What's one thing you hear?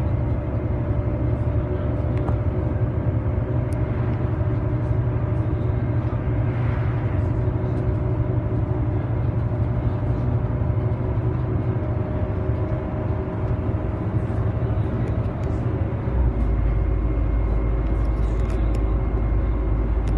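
A bus engine hums and drones steadily while driving.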